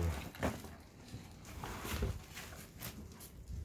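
A paper sheet rustles as it is pulled from a cardboard box.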